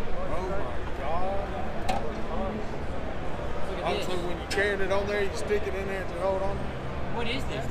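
Many people murmur in the background of a large, busy hall.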